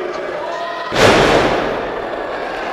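A wrestler's body slams hard onto a ring mat.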